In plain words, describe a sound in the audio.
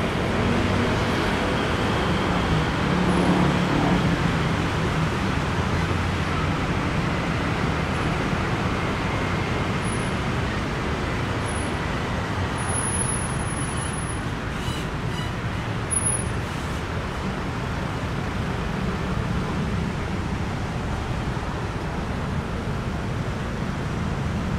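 Slow traffic hums and rumbles steadily along a city street.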